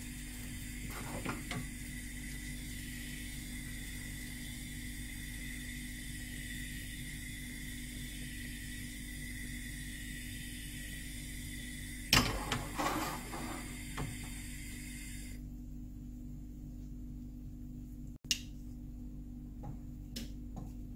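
Eggs sizzle softly in a frying pan.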